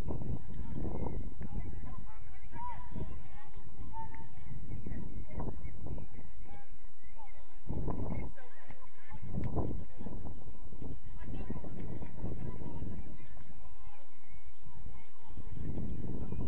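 Young men shout to each other far off across an open outdoor pitch.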